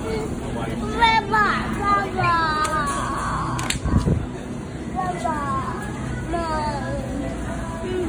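A young child talks in a high voice close by.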